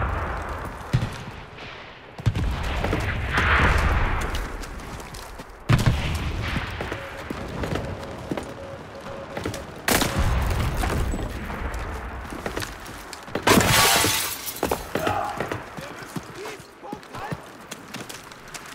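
Footsteps crunch over rubble and gravel.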